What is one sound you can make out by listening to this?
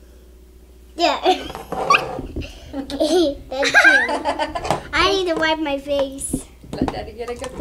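A young girl laughs and squeals excitedly up close.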